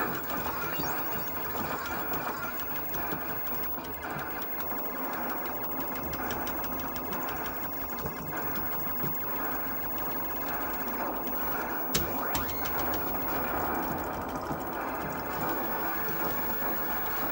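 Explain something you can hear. An arcade shooting game plays loud electronic music and blasts of gunfire.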